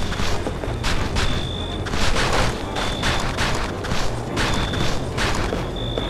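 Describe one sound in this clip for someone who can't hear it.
Footsteps crunch steadily on snowy ground.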